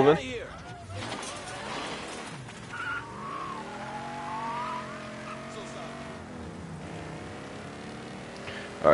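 A car engine starts and revs as the car drives off.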